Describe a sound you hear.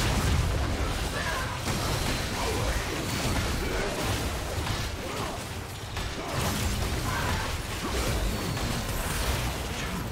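Magic spells whoosh and blast during a fight.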